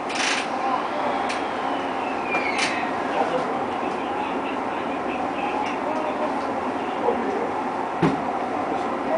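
Train wheels click and clunk over rail joints.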